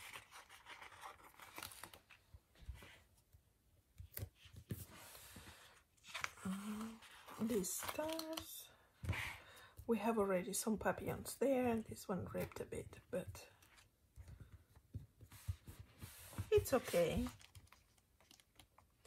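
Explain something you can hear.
A sticker is peeled off a paper backing sheet.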